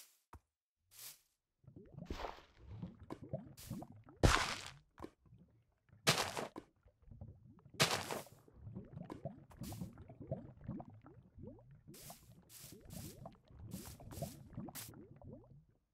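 Short clicks and swishes sound as items are picked in a game menu.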